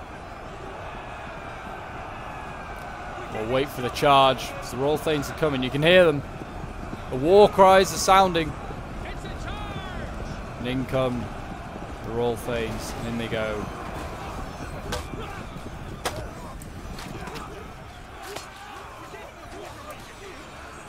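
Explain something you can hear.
Weapons and armour clatter among a large crowd of soldiers.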